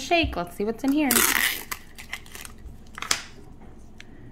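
A small plastic capsule crackles and clicks as it is pried open by hand.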